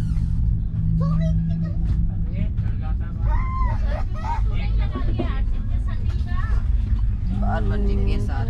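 A train rumbles steadily underneath.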